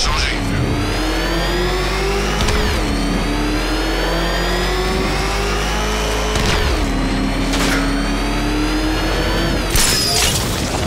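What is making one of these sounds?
A powerful car engine roars and revs up through the gears.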